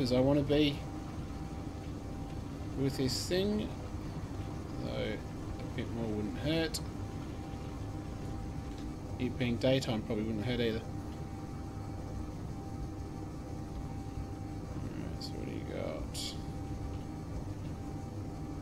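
A ship's engines hum low and steadily.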